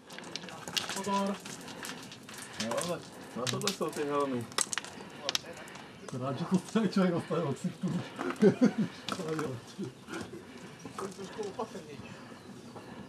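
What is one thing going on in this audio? A man talks nearby, slightly out of breath.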